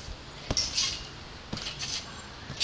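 A trampoline mat thumps and creaks under bouncing feet.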